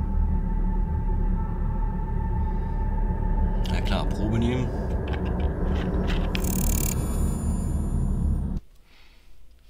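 Loud, deep rumbling film music with sharp sound effects plays, then cuts off abruptly.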